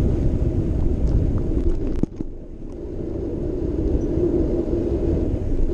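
A vehicle's engine hums steadily as it drives along a street.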